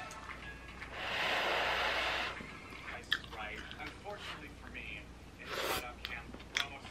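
A woman slurps noodles close by.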